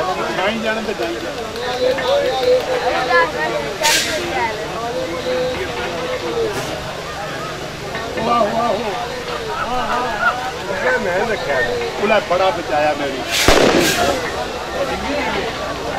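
A crowd of men talks and calls out outdoors.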